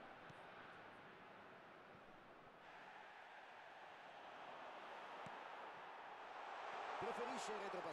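A stadium crowd roars steadily and swells louder.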